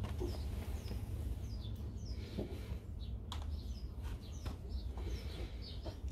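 Fingers press softly into loose soil.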